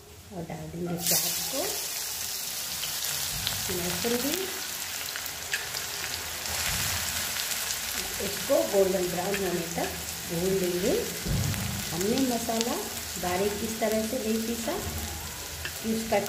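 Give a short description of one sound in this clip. Hot oil sizzles and crackles loudly.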